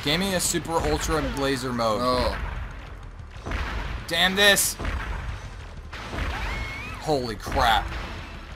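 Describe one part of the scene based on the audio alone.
Small guns fire rapid shots.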